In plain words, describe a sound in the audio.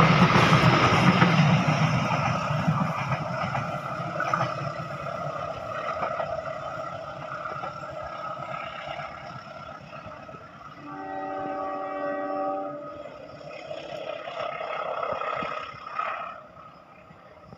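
A passenger train rumbles along the rails close by and slowly fades into the distance.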